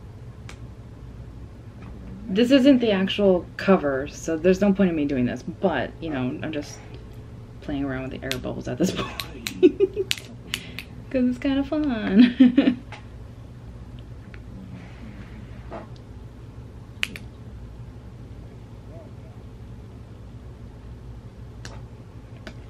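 Fingertips tap on a tablet's glass.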